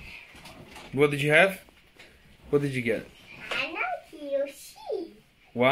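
Young children talk and squeal close by.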